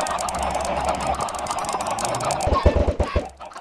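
A flock of chickens clucks loudly.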